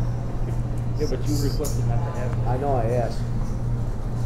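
A man speaks briefly and casually at a table.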